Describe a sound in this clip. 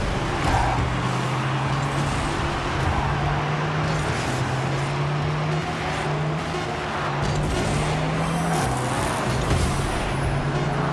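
A car engine hums steadily and shifts pitch.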